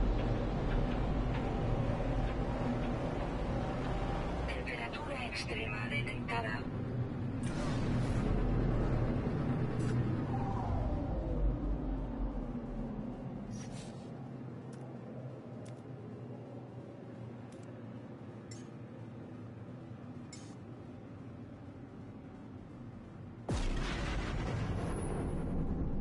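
A spacecraft engine roars with a steady low rumble, quieter for a while and then surging loud again.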